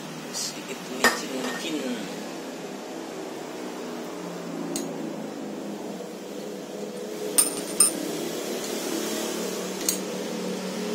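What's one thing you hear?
Metal parts clink and knock sharply.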